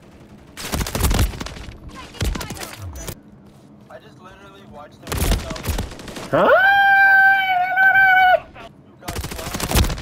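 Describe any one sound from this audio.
Automatic gunfire rattles in loud bursts.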